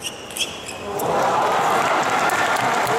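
A large crowd cheers and applauds loudly in a big echoing hall.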